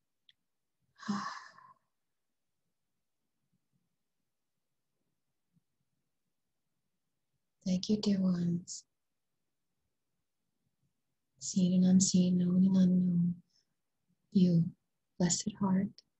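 A woman speaks slowly and calmly, close to a microphone, with long pauses.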